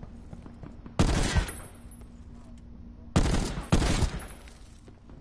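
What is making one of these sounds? A heavy gun fires loud bursts of shots.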